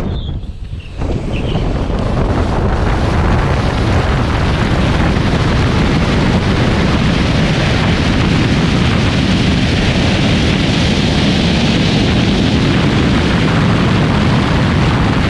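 Wind roars loudly past a car speeding up hard.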